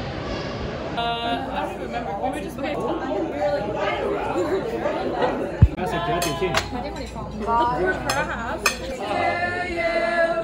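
Young women chatter and laugh close by.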